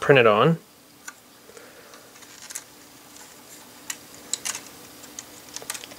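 Plastic toy parts click and rattle softly as they are handled.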